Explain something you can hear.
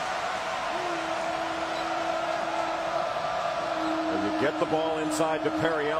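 A large crowd roars and cheers in a big echoing arena.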